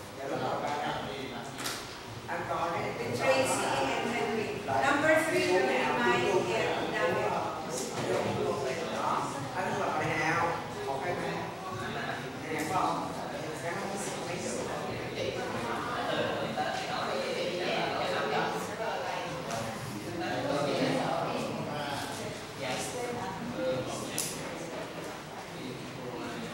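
A woman speaks calmly to a room, heard from across the room.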